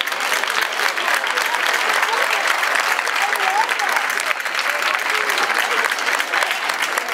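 A seated crowd of adults murmurs and chatters outdoors.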